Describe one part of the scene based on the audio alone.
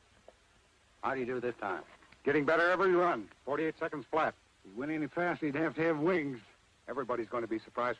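A man speaks with concern, close by.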